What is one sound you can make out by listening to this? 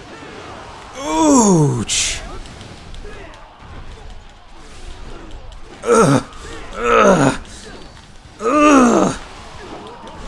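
Loud whooshing bursts sweep through the air.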